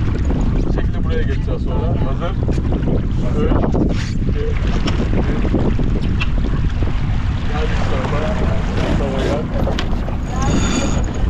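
Men and women talk loudly over the wind.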